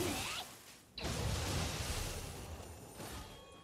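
Magic bursts crackle and whoosh.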